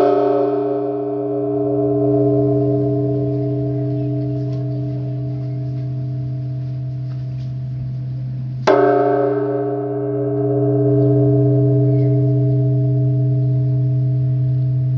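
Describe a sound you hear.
A large bell's deep hum rings on and slowly fades.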